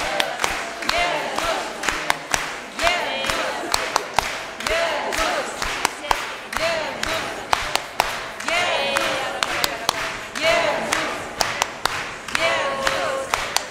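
A large crowd claps along in rhythm.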